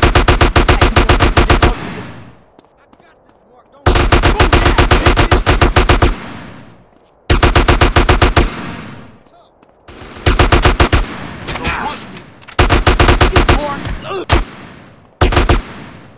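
A rifle fires rapid automatic bursts that echo off the street.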